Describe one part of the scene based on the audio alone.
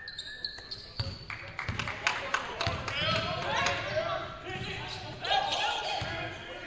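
Players and spectators shout and cheer in a large echoing gym.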